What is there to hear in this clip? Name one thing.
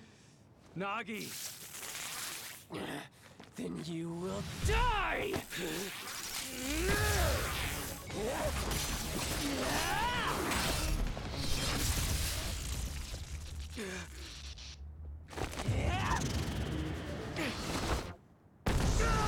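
A young man speaks intensely, as if acting a dramatic scene.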